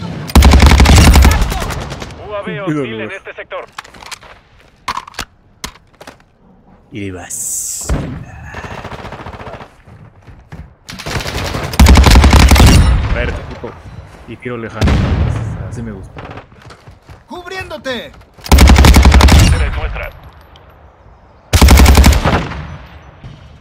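Gunfire rattles in short, loud rapid bursts.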